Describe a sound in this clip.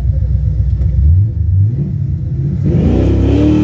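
A car engine revs up in short bursts.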